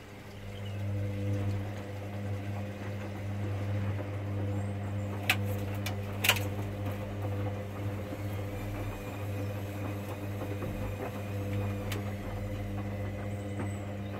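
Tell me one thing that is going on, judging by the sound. Wet laundry tumbles and sloshes inside a washing machine.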